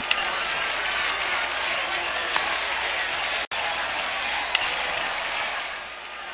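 Coins jingle and clink in quick bursts.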